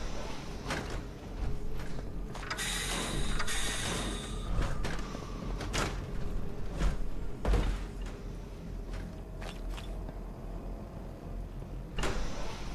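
Heavy metal footsteps clank on a hard floor.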